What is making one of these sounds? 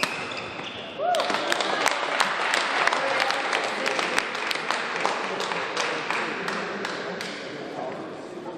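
A small crowd claps and applauds in a large echoing hall.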